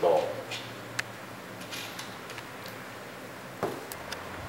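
Small metal clicks sound as a wire is fastened to a terminal.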